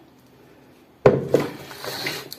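A plastic container knocks down onto a counter.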